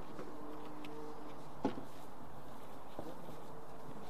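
Wooden boards knock together as they are lifted.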